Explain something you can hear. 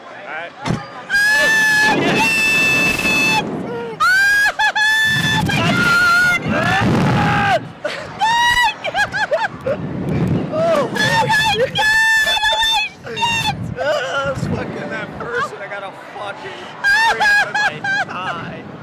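A young woman screams loudly and repeatedly up close.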